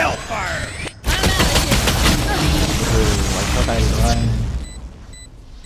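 A loud blast roars and crackles.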